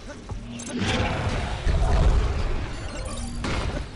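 Blows land in a close fight.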